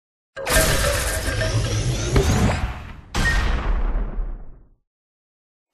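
Loud game sound effects burst and crash with a rush of bright tones.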